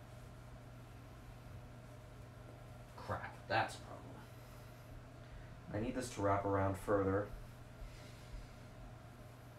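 Clothes rustle softly as they are handled.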